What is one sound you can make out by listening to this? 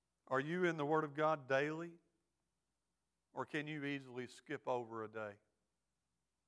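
A middle-aged man speaks slowly and earnestly through a microphone, with pauses.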